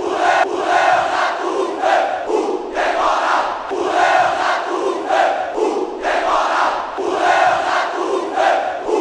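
A large crowd sings and chants loudly in unison in an open stadium.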